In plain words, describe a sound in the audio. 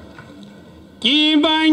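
An elderly man speaks loudly close by.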